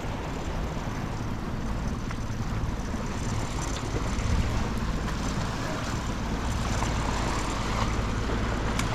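Waves lap and splash against rocks.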